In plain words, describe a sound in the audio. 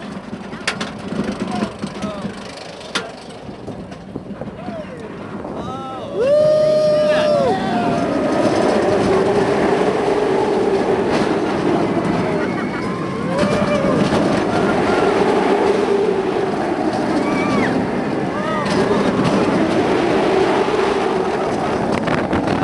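A roller coaster car rattles and roars along its track.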